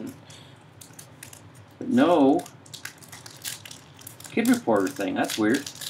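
A foil wrapper crinkles and rustles up close.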